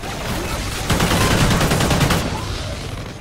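An explosion bursts with a deep boom.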